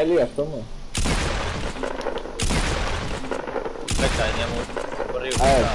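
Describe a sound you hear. Gunshots ring out in loud, rapid bursts.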